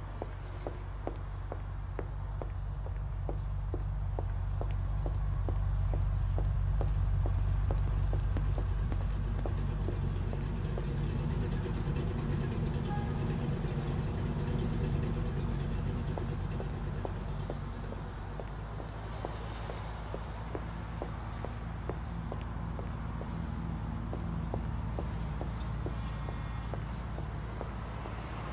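Footsteps tap steadily on paving.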